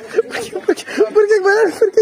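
A young boy talks close by.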